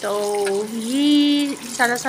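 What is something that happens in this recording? Water splashes into a bowl.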